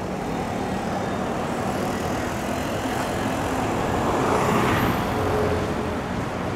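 A bus drives past close by.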